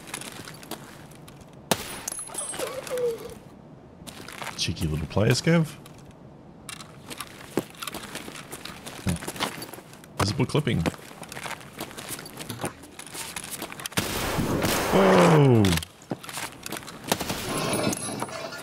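Footsteps crunch over broken glass on a hard floor.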